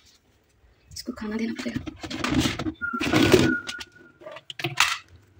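Plastic container lids clack.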